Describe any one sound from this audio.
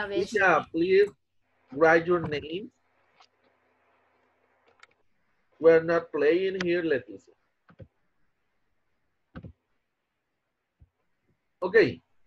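A man speaks over an online call, with pauses.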